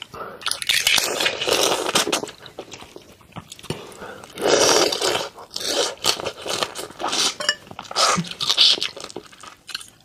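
A young woman slurps and sucks loudly on shrimp close to a microphone.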